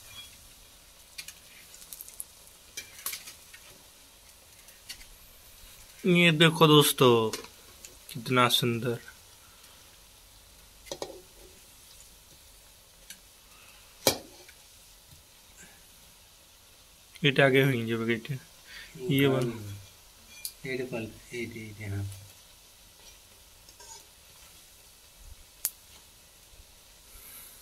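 A metal slotted spoon taps and scrapes against a metal wok.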